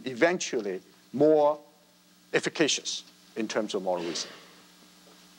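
A man speaks into a microphone, calmly, in an echoing hall.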